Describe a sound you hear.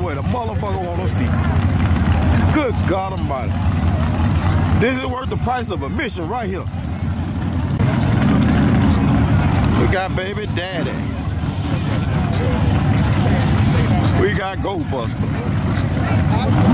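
Race car engines idle with a loud, deep, rumbling roar.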